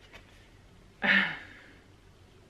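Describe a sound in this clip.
A woman laughs close to a microphone.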